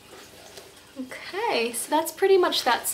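A young woman speaks brightly, close to the microphone.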